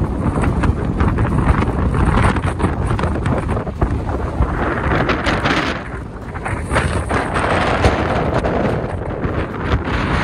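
Strong wind buffets and roars across the microphone outdoors.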